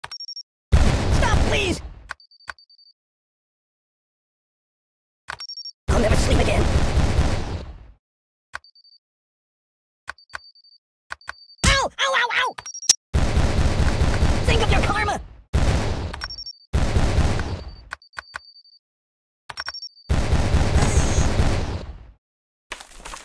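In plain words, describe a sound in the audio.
Mines explode with loud booming blasts.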